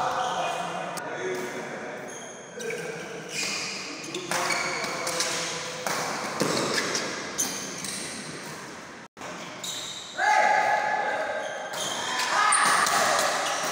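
A shuttlecock is struck with rackets, sharp pops echoing in a large hall.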